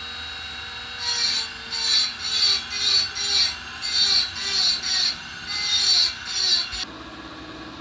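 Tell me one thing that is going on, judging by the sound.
A metal tool scrapes against a spinning wheel in rhythmic bursts.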